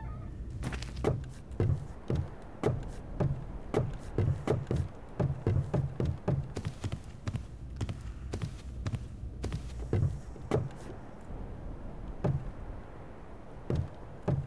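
Footsteps thud on wooden planks at a steady walking pace.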